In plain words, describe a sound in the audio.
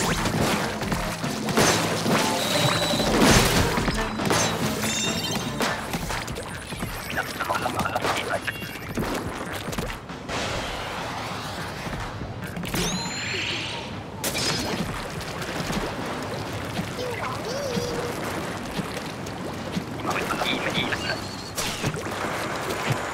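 Game ink splats and squelches as shots are fired.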